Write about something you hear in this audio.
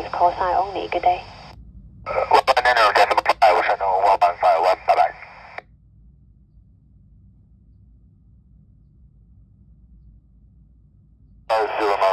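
Voices come through a small radio loudspeaker in short, crackly transmissions.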